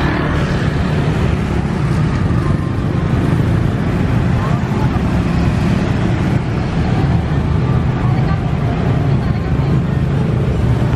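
Motorbike engines hum and rev as they pass close by.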